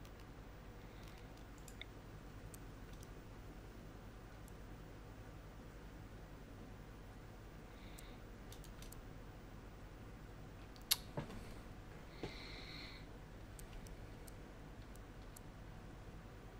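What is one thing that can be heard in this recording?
Soft game interface clicks sound now and then as items are placed.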